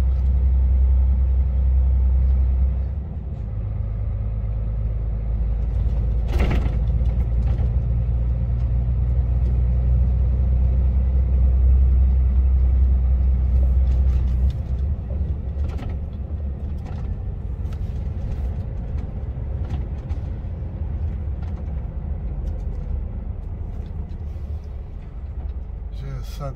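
A heavy truck engine rumbles low and steady as the truck drives along.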